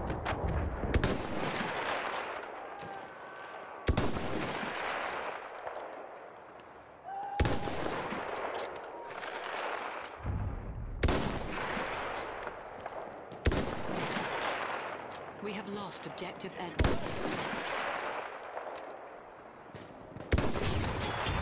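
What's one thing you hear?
A rifle fires loud shots that echo and roll away.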